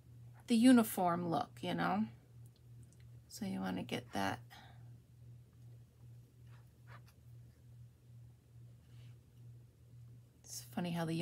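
A crochet hook softly pulls yarn through loops.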